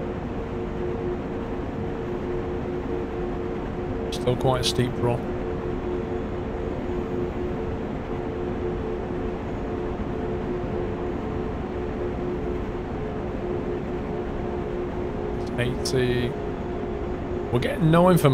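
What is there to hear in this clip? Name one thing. An electric train's motor hums steadily as it runs along the tracks.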